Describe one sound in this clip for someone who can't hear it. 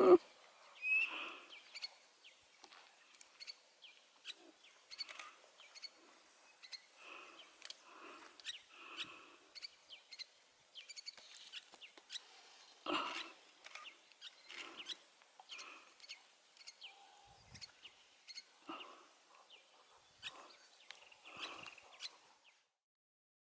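Small claws scratch and dig in dry wood.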